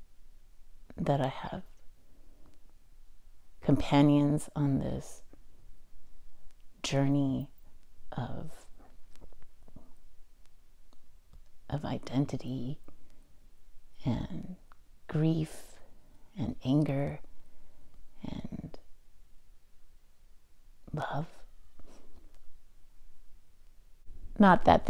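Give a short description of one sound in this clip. A woman speaks calmly and close into a microphone, pausing between phrases.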